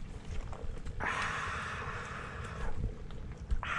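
Footsteps crunch on loose pebbles close by.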